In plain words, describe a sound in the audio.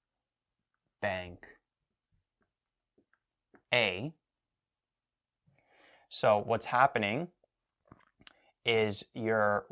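A young man speaks calmly and clearly, close by.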